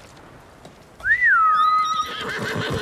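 A short whistle calls out.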